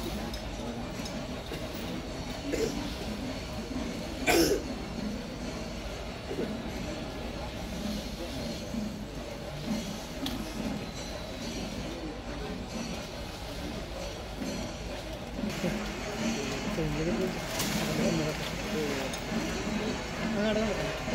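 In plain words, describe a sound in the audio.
An elephant rustles and tears through dry palm leaves.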